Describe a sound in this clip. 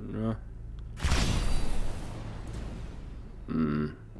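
A loud explosion booms and roars, then fades away.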